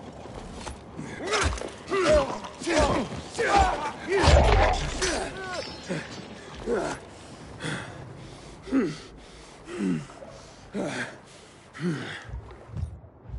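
A creature shrieks and growls in a series of rising and falling cries.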